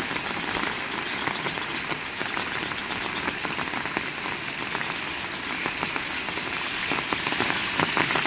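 Rain falls steadily outdoors.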